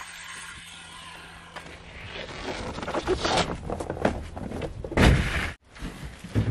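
A large wooden board scrapes and knocks as it is shifted.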